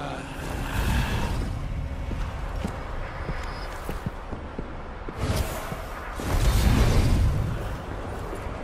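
A magical whoosh rushes past loudly.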